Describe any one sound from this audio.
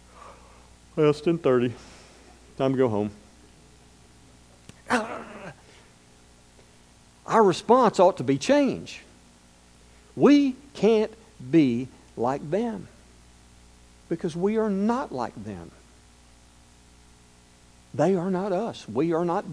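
A middle-aged man speaks calmly into a microphone in a large echoing hall, with pauses.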